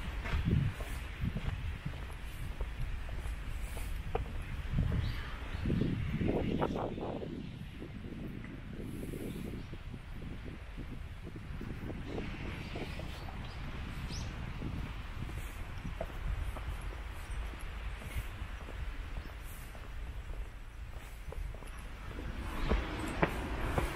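Footsteps scuff slowly along pavement.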